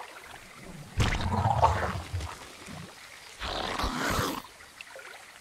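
Alien creatures screech and chitter in short bursts.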